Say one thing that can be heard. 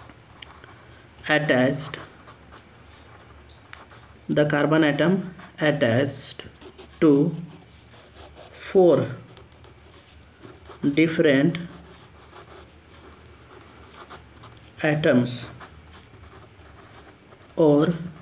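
A marker pen squeaks softly across paper.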